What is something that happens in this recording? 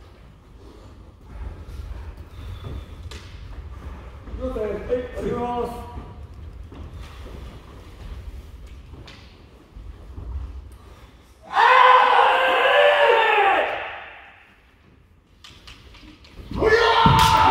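Bare feet stamp on a wooden floor.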